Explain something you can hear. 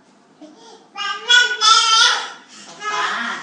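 A toddler cries and whines loudly close by.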